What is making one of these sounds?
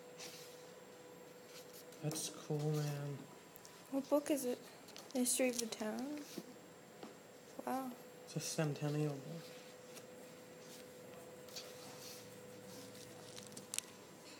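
Paper pages rustle and flip as a large book is leafed through.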